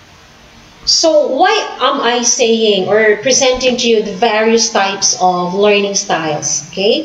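A young woman speaks calmly through a microphone, as on an online call.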